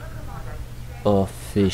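A handheld tracker beeps loudly twice.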